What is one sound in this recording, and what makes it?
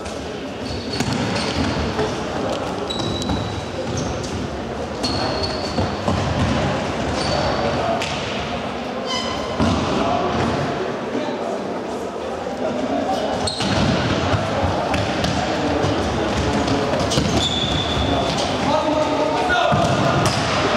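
A ball thuds off a player's foot now and then.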